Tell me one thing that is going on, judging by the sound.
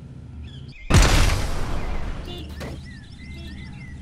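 A grenade explodes with a heavy blast.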